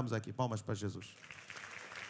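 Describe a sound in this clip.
A man speaks into a microphone.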